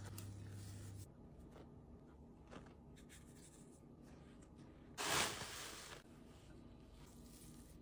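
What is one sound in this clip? A spatula scrapes and stirs thick batter in a glass bowl.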